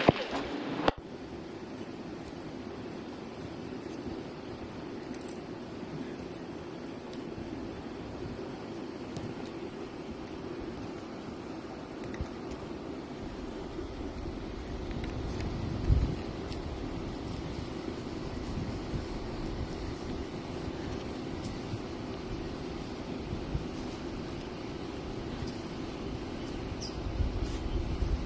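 A creek trickles over rocks.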